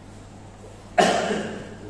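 A man coughs.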